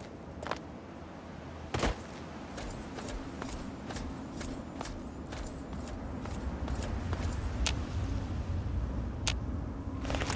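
Footsteps crunch steadily on dry, stony ground.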